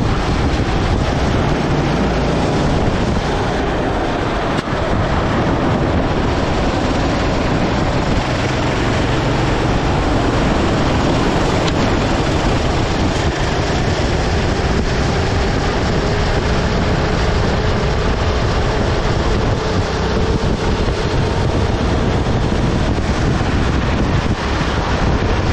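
Wind rushes past a moving go-kart.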